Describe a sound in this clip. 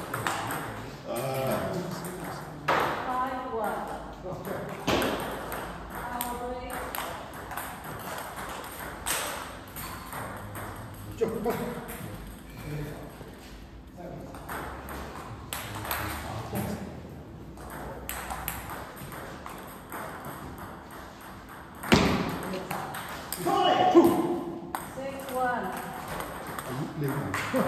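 Men talk nearby in an echoing hall.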